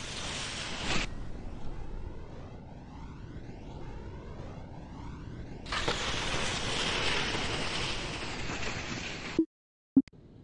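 Wind rushes past a ski jumper in flight.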